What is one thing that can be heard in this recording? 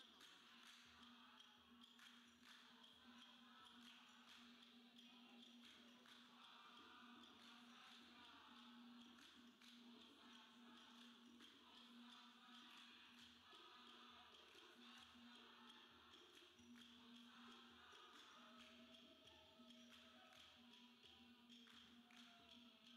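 A large crowd of young people chants and sings loudly together.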